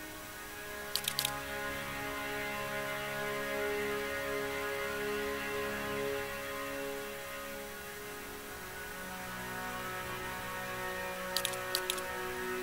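Menu buttons click a few times in quick bursts.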